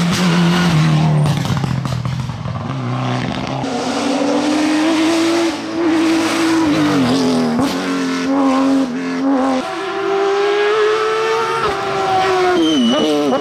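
Racing car engines roar loudly and rev up and down as the cars speed past.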